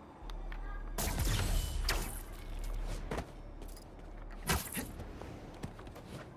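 Air rushes past in loud whooshes as a figure swings and leaps.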